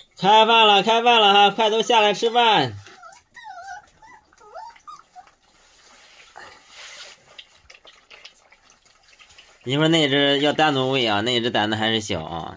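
Puppies crunch and lap at food close by.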